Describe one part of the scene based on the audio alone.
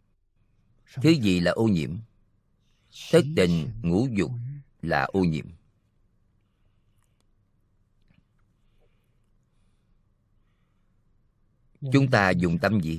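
An elderly man speaks calmly and slowly into a microphone, pausing between phrases.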